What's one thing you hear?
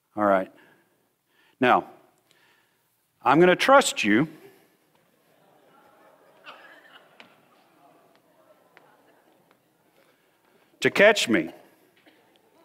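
A man speaks in short, loud phrases through a microphone in a large echoing hall.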